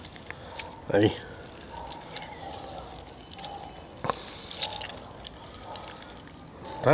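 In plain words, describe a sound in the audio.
Hands crumble and rub food in a metal bowl with soft crackling and rustling.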